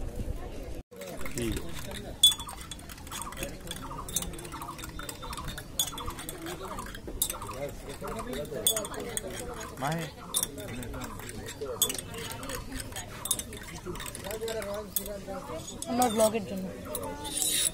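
A spoon stirs tea and clinks against a glass.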